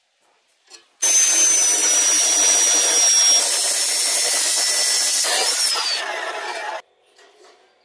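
An abrasive chop saw whines loudly, grinding through metal tubing.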